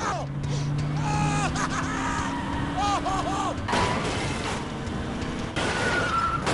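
Car tyres squeal sharply again and again.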